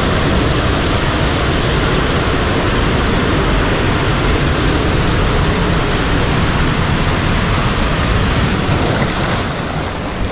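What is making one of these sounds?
Water rushes loudly through an echoing slide tube.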